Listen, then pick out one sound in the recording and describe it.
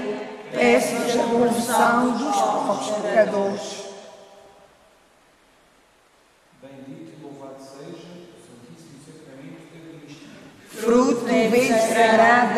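A group of young people sings together in a large echoing hall.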